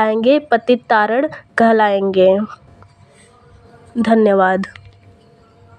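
A young woman recites verse in a melodic, sing-song voice.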